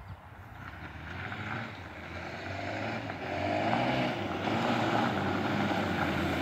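An inline-four sport bike approaches at speed, its engine rising to a roar.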